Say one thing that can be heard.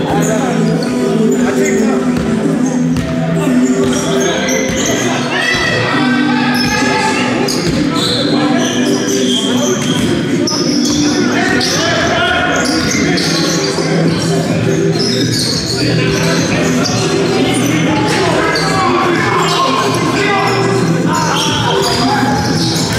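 Young men shout to each other across a large echoing hall.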